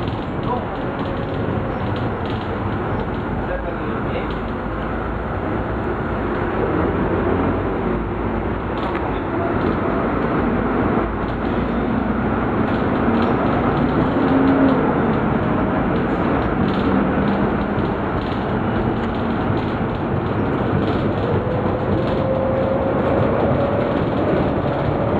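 A bus engine drones steadily and rises and falls in pitch as the bus drives.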